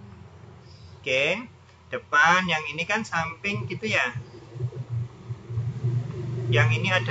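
A woman explains calmly through a microphone, with pauses.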